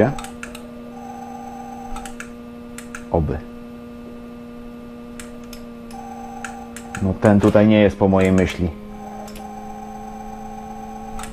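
Computer keys click and tap.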